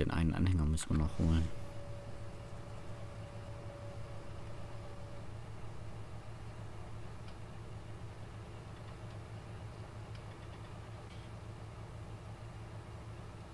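Grain pours out of a tipping trailer.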